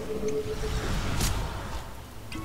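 A magical beam bursts with a sudden whoosh.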